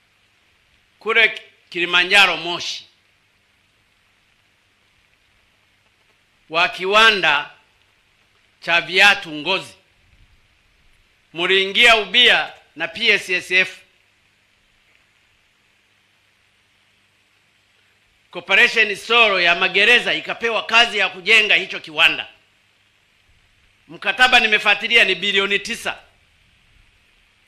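A man gives a speech through a microphone and loudspeakers, in short phrases with long pauses.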